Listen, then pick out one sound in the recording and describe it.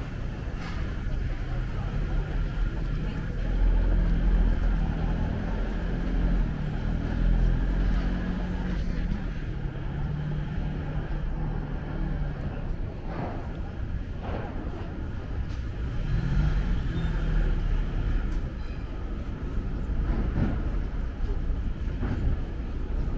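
A truck engine idles with a low rumble nearby.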